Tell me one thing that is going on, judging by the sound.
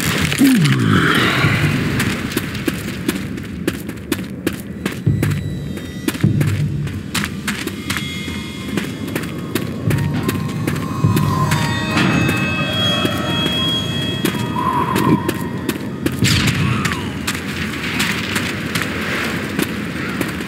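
Heavy footsteps thud steadily on hard ground.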